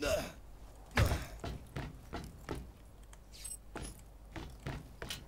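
Footsteps thud quickly across a metal roof.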